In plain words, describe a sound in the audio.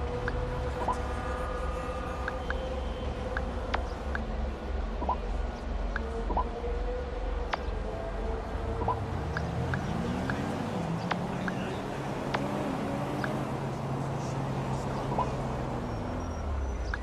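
A phone menu clicks softly as options are scrolled through.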